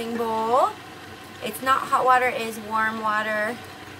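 Water pours into a metal bowl.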